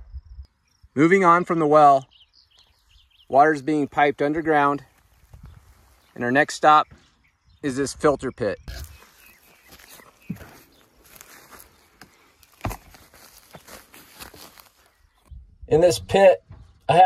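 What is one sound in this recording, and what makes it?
A middle-aged man talks calmly, close to the microphone.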